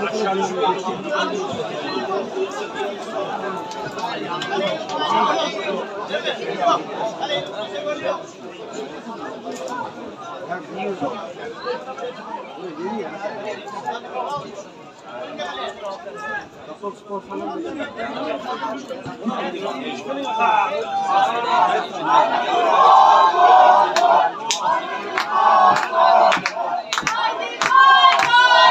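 Men shout and call out to each other across an open outdoor pitch.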